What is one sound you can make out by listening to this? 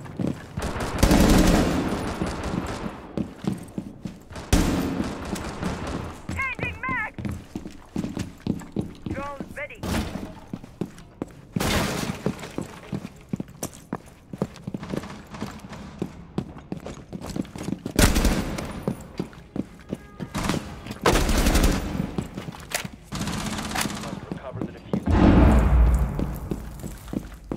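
Gunshots crack in short, loud bursts.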